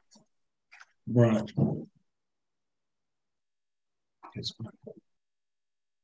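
A younger man speaks briefly over an online call.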